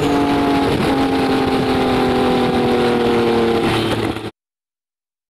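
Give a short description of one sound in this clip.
Wind rushes past a fast-moving car.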